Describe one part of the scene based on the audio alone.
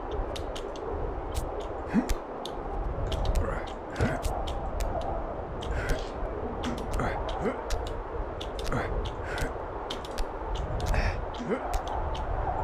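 Sharp clicks sound as hands grab onto rock.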